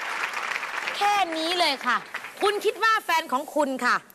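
A woman speaks with animation through a microphone.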